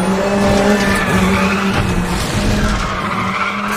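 Tyres skid and scrape on loose gravel.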